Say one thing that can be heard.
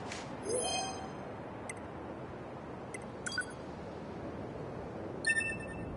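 Short bright menu chimes ring out several times.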